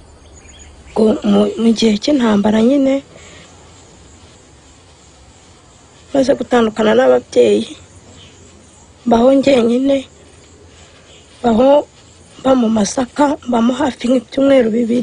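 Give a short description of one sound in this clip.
A woman speaks calmly and quietly, close by.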